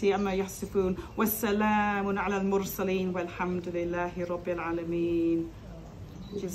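A young woman chants a prayer in a melodic voice close to a headset microphone.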